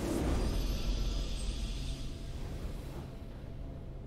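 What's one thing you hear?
A triumphant game fanfare rings out and fades.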